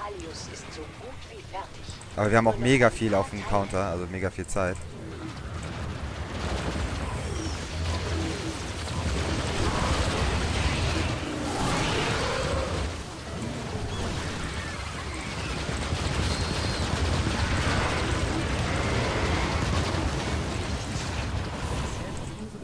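Gunfire and explosions rattle in a fast battle.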